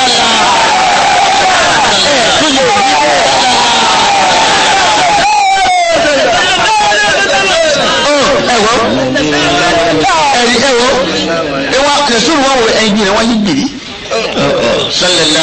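An elderly man chants with animation into a microphone.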